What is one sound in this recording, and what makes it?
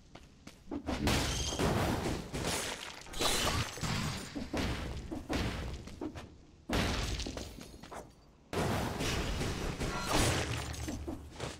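Rapid blade swipes and hits clash in a fast fight.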